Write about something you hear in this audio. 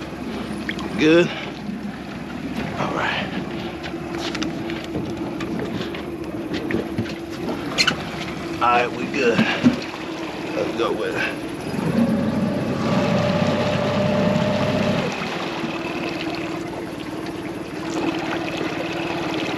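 An outboard motor hums steadily.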